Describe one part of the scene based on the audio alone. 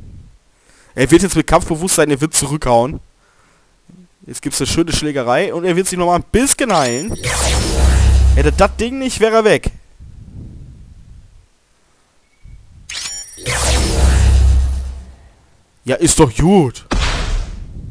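Electric energy crackles and zaps in short bursts.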